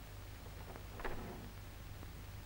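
A door swings open with a short creak.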